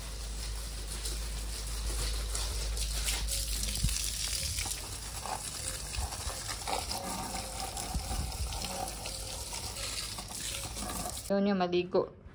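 Water sprays from a hose and splashes onto soil and paving.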